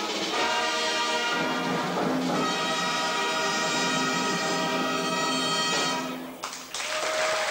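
A band plays a loud final chord in a large hall.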